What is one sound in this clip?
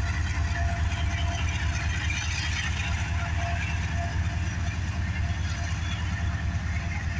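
A diesel locomotive engine rumbles loudly nearby.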